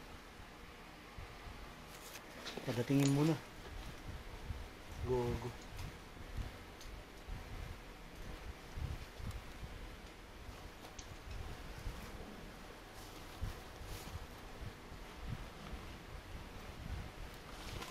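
Small objects clatter and rustle close by as they are handled.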